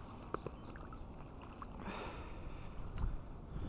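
Water splashes softly as a net moves through it.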